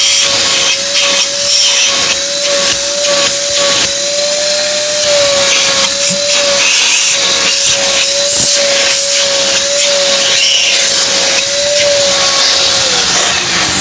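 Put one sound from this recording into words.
A small vacuum cleaner motor runs with a steady high whine and rushing air.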